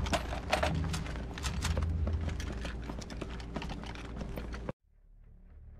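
Footsteps of heavy boots thud on a hard floor.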